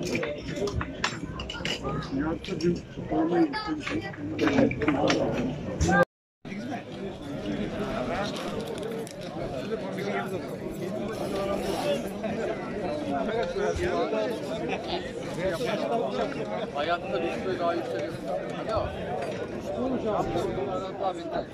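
A crowd of men murmurs and chatters outdoors.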